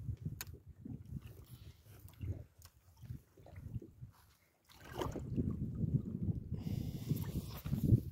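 Small waves lap against a boat's hull.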